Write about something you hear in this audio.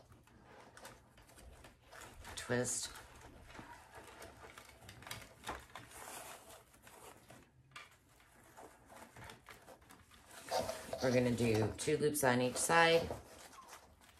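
Satin and metallic ribbon rustles and crinkles as hands fold it.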